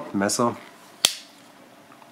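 A small metal tool clicks against metal.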